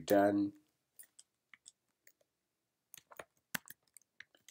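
Keys click softly on a keyboard as someone types.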